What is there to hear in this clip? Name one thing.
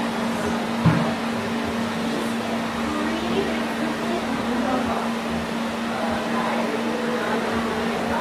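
Scissors snip through hair.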